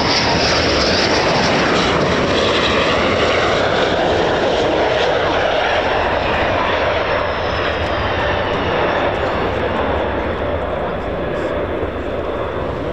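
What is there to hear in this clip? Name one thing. A jet engine roars loudly and slowly fades into the distance.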